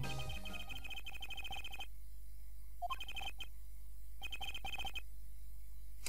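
Rapid high electronic blips chatter in short bursts.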